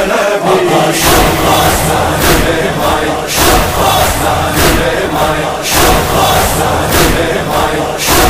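Hands beat on chests in a slow, steady rhythm.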